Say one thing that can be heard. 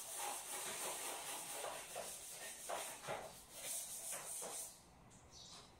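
Objects knock and clatter as a woman tidies up nearby.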